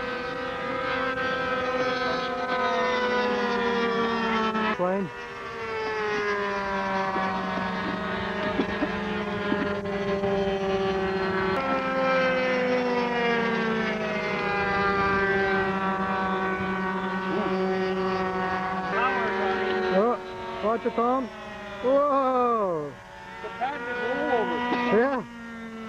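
A model airplane engine whines loudly, its pitch rising and falling as it swoops past.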